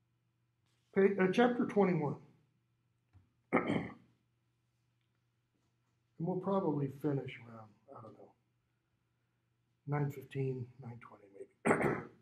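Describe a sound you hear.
A middle-aged man speaks with animation close by, in short bursts with pauses.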